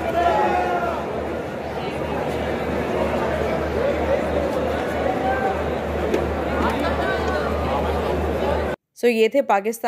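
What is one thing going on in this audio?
A large stadium crowd cheers and chatters, echoing under a roof.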